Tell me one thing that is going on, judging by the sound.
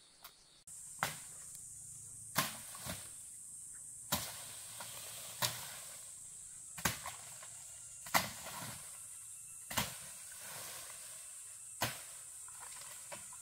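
A blade chops into brush at a steady pace.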